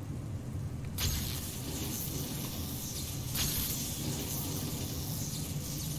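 An electric charge crackles and buzzes loudly.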